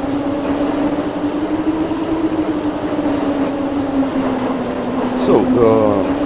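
A train engine hums steadily as it rolls along.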